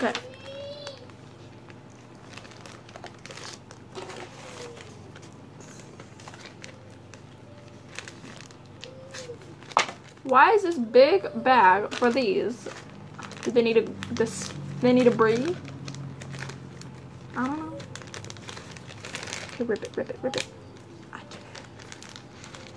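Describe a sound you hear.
A plastic bag crinkles in someone's hands.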